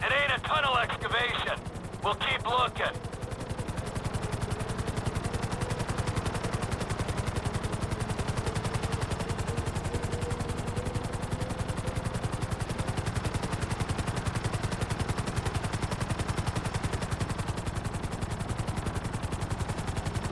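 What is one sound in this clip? A helicopter's rotor blades thump steadily overhead.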